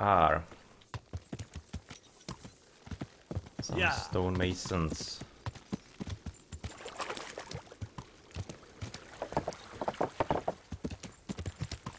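A horse's hooves clatter on a dirt road at a gallop.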